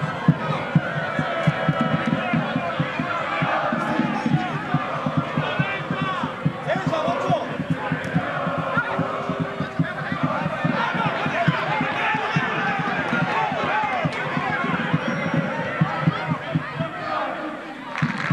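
A crowd of fans chants and shouts loudly outdoors.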